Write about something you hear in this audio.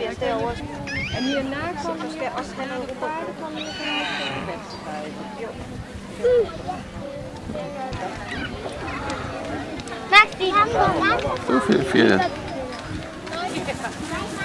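Horses' hooves thud softly on grass.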